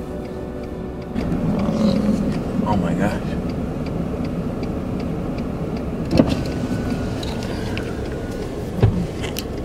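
A car engine hums steadily while driving slowly on a road.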